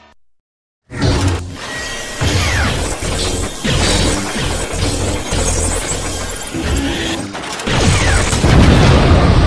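A toy gun fires a loud blast.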